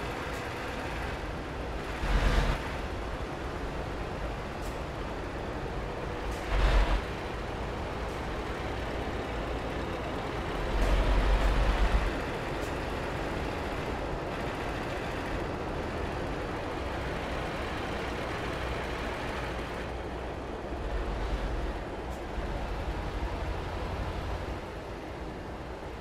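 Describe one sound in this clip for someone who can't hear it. A heavy truck engine rumbles steadily, with loud low roaring surges.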